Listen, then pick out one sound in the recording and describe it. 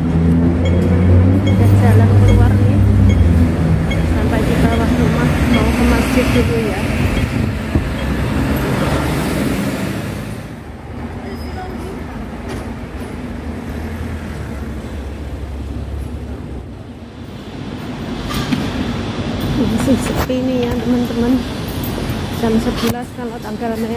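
Traffic hums on a city street.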